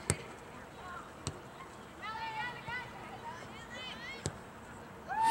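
A soccer ball is kicked with a dull thud.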